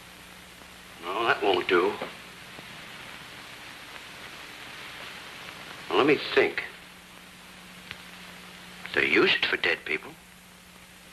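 A man speaks in short, gruff bursts with pauses between them.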